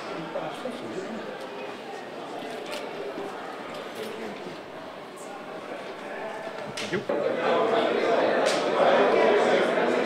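Several young men chat and talk over one another.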